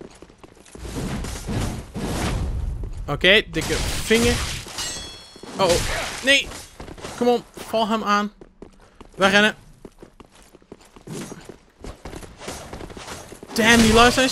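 Swords clang and slash in a fight.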